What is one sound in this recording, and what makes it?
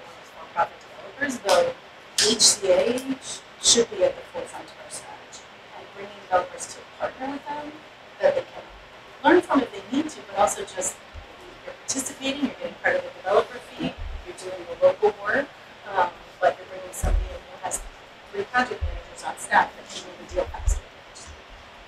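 A woman speaks steadily into a microphone, heard through a loudspeaker in a room with some echo.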